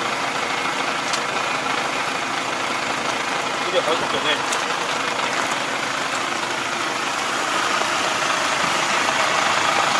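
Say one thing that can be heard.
A tractor engine runs steadily close by.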